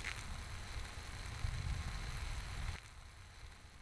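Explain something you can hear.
A small flame hisses softly.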